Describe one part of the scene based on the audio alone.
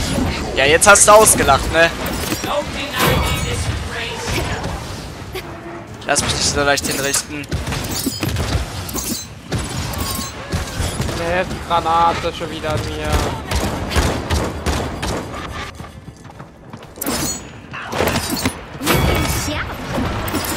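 Game weapons fire and clatter in rapid bursts.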